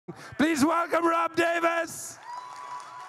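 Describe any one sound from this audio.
An older man speaks with animation through a microphone.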